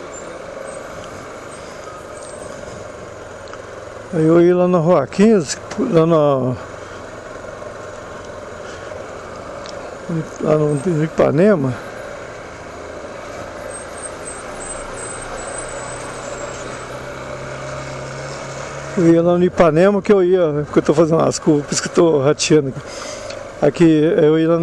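A motorcycle engine idles and hums low nearby.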